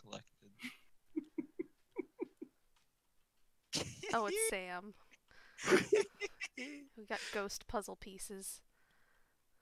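A young woman talks and laughs with animation through a headset microphone.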